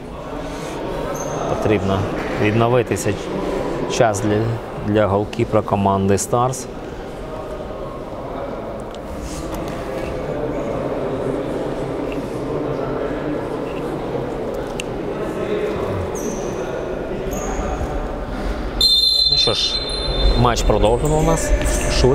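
A ball thumps off a player's foot.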